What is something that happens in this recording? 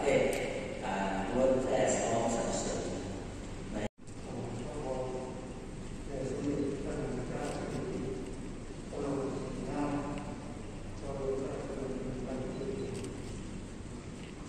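A man reads out slowly through a microphone in a large echoing hall.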